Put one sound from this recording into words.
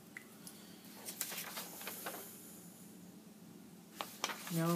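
A sheet of paper rustles as it is lifted and handled.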